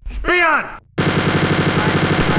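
A rapid-fire gun shoots in a fast, steady burst.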